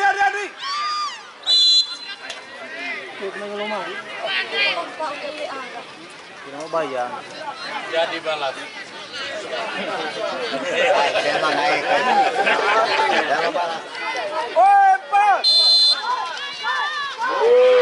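A large crowd shouts and cheers outdoors.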